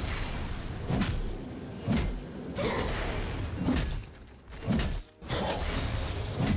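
Game spell effects whoosh and blast in quick bursts.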